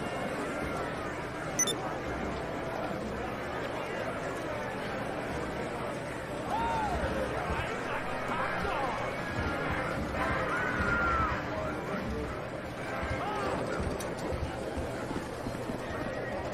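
Slot machines chime and jingle.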